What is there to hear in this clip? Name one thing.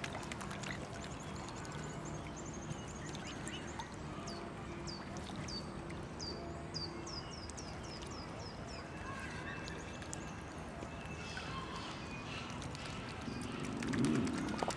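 Water ripples and laps gently.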